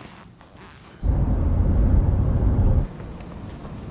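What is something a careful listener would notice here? A car engine hums from inside a moving car.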